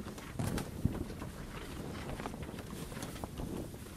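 Footsteps thud softly on a boat deck.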